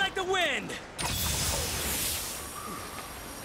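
A burst of magical shimmering sound rings out.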